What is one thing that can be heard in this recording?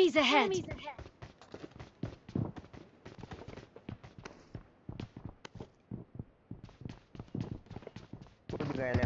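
Footsteps patter quickly on a hard floor.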